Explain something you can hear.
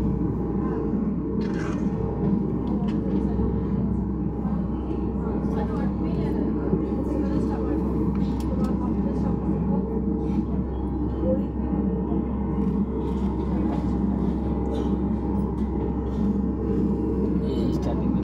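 An airliner's engines hum steadily inside the cabin as the plane taxis.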